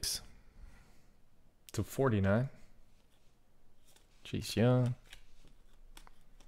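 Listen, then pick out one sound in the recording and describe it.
Trading cards slide and rustle softly against each other.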